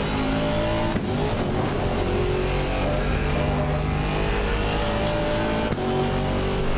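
A racing car engine briefly drops in pitch as the gears shift up.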